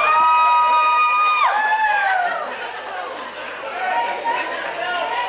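A crowd of spectators shouts and chants indoors.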